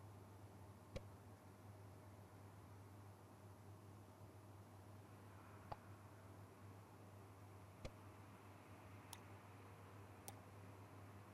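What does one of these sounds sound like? A puzzle tile clicks softly as it turns into place.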